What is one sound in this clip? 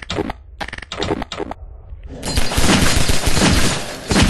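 Gunshots bang sharply, one after another.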